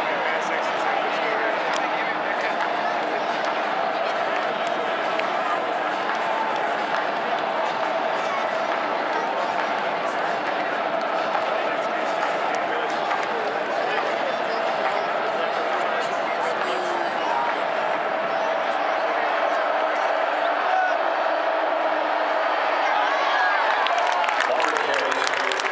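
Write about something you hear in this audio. A large stadium crowd roars and cheers steadily in a huge open space.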